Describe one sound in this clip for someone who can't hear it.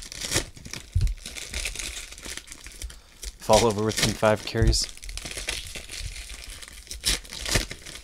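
Foil wrappers crinkle and rustle as hands tear open packs.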